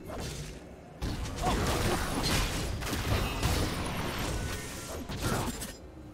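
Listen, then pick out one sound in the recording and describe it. Magic blasts and sword strikes clash in a fast, noisy fight.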